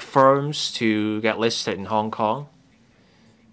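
A middle-aged man reads out a speech calmly through a microphone.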